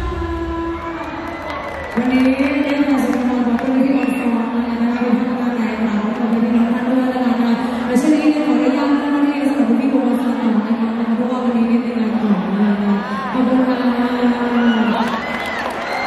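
A young woman sings loudly through loudspeakers.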